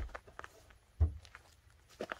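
A bulky bag thumps softly as it is set down.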